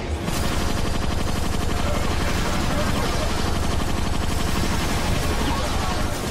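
A heavy gun fires rapid bursts with loud, continuous blasts.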